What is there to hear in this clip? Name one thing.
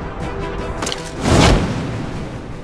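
A parachute snaps open with a loud whoosh.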